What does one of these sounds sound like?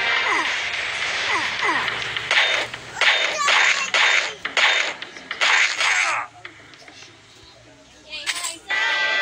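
Game sound effects of slashing and blasts burst out in quick succession.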